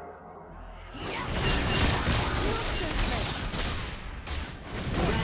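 Magic spell effects burst and crackle in a busy fight.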